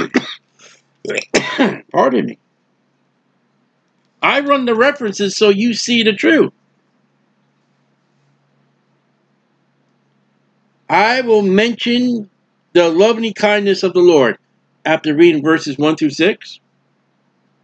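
A middle-aged man speaks calmly into a close microphone, in bursts with long pauses.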